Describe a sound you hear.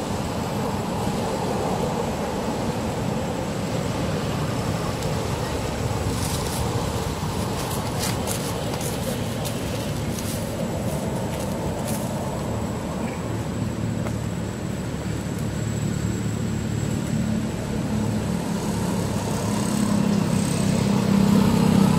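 A monkey calls out briefly outdoors.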